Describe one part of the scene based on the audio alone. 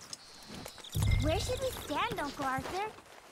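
A rider climbs down from a horse with a rustle and a thud.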